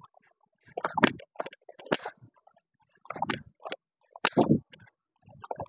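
Bare feet thump and shuffle on a mat.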